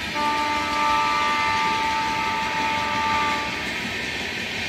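A train's horn blows loudly, steady and held.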